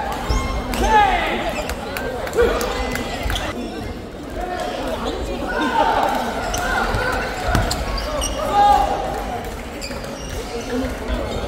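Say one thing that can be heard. Shuttlecocks are struck by rackets with sharp taps.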